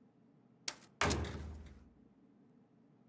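A low thud sounds as a message box opens.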